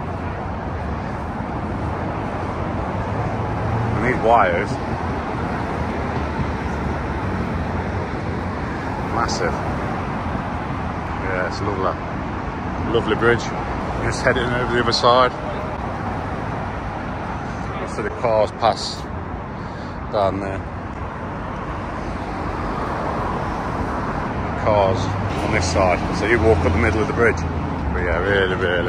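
Traffic rumbles steadily along a road below, outdoors in the open air.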